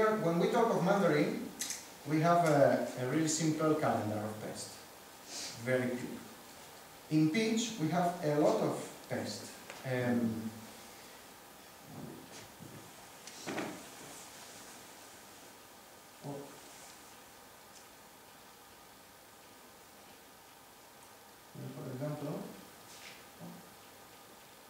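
A man speaks to an audience, pausing now and then.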